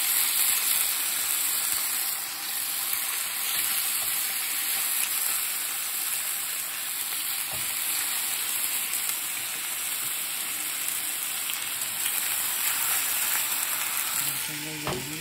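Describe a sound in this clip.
Meat sizzles loudly in a hot pan.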